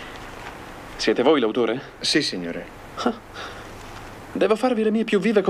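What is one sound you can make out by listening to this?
A second man answers in a calm voice.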